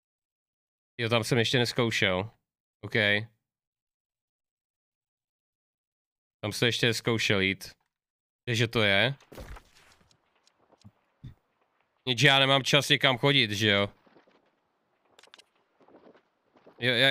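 A young man talks casually and close into a microphone, in bursts with pauses.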